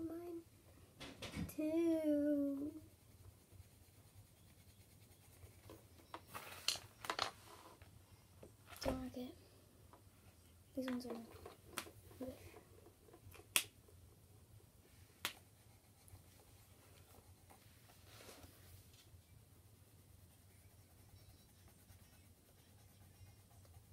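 Pencils scratch softly on paper.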